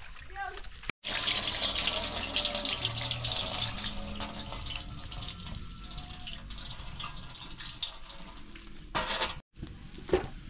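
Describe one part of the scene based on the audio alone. Water splashes and trickles into a metal basin.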